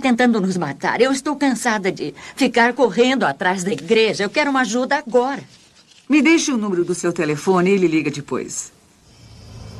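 An older woman speaks calmly, close by.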